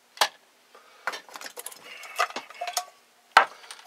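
A small metal part rattles and scrapes in someone's hands.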